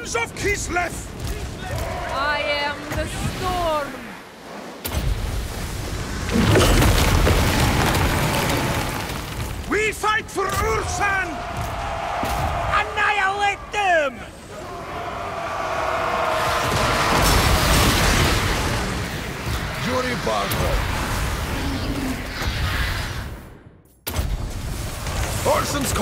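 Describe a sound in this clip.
Weapons clash and clatter in a crowded battle.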